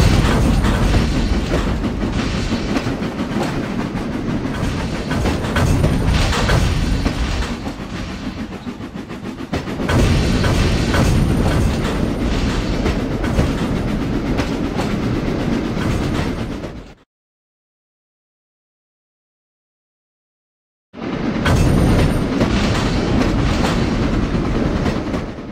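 A steam locomotive chugs steadily along.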